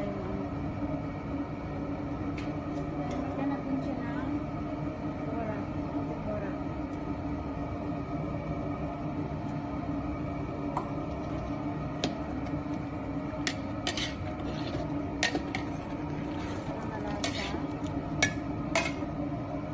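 Broth bubbles at a rolling boil in a large metal pot.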